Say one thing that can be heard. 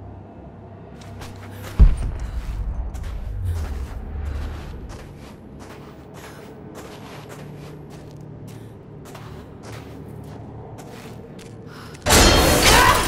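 Footsteps crunch on loose stone and gravel.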